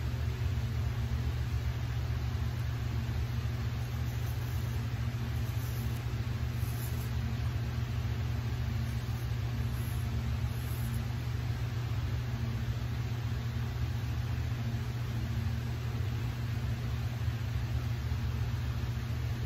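A straight razor scrapes softly over stubble.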